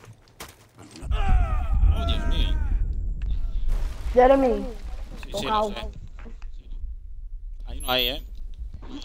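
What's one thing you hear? A loud explosion booms with a deep rumble.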